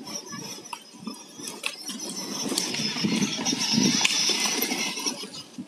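Plastic wheels rumble over asphalt.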